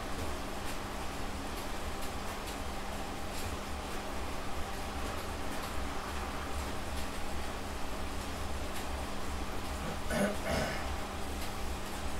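A bike trainer hums steadily under pedalling.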